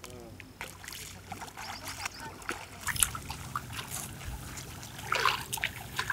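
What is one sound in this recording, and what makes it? Feet splash and squelch through shallow muddy water.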